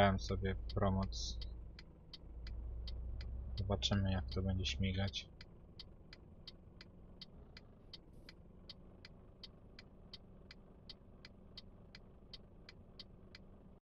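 A turn signal ticks steadily.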